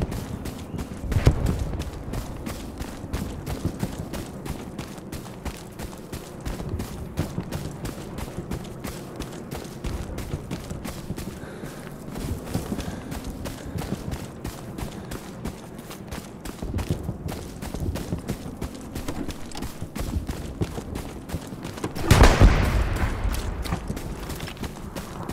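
Footsteps crunch steadily over a forest floor.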